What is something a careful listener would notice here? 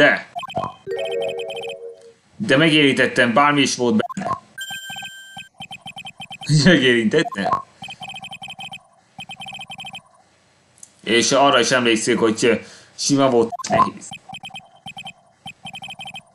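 Short electronic blips chatter in a quick rhythm.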